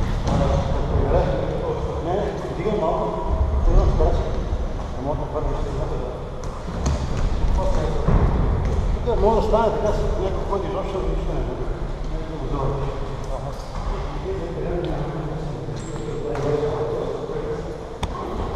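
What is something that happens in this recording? A man speaks loudly in an echoing hall, giving instructions.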